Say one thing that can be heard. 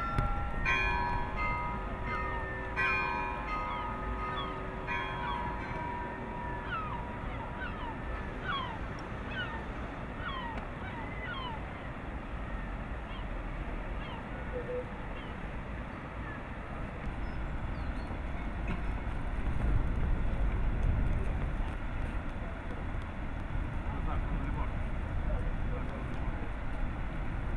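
Water laps gently against a wooden boat.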